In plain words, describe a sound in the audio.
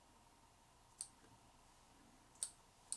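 Scissors snip sharply.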